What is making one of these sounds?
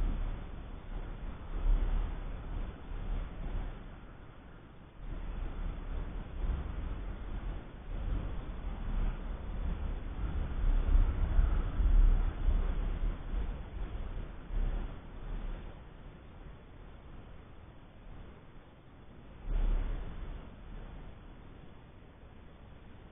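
Wind gusts and rumbles across an open outdoor space.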